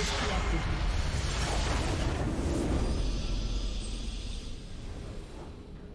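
A huge explosion booms and rumbles, then slowly fades.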